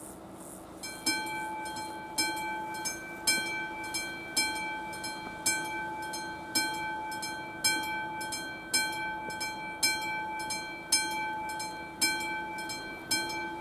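A level crossing bell rings with steady, even strokes.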